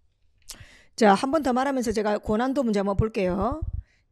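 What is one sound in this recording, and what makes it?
A young woman speaks animatedly into a microphone close by.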